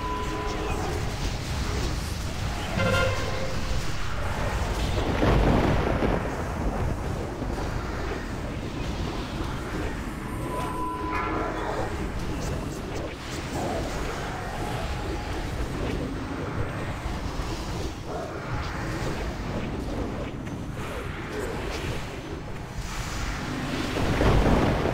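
Magic blasts and weapon strikes clash in a busy fight.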